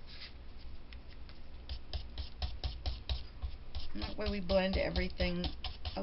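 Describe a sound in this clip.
A brush taps rapidly on paper.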